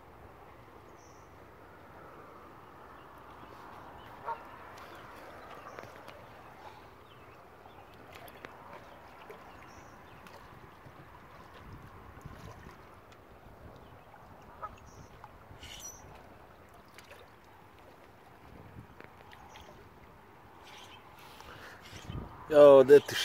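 Small waves lap against shoreline rocks.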